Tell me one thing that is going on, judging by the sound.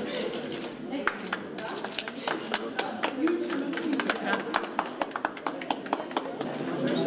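People applaud with quick, scattered clapping.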